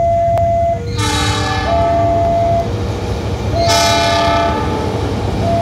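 A diesel locomotive sounds its horn as it approaches.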